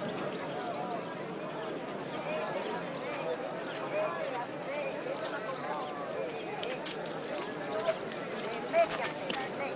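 A crowd of men and women sing and chant together outdoors.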